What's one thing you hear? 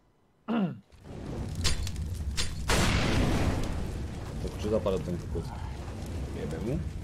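Flames from a fire bomb whoosh and crackle.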